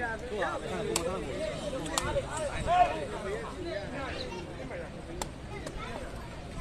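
A rattan ball is kicked with sharp taps.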